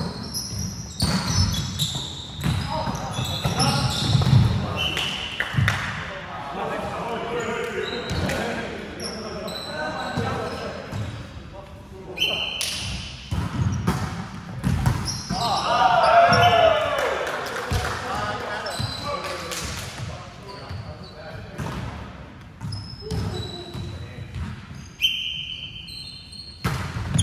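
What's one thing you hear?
A volleyball is hit with sharp slaps in a large echoing hall.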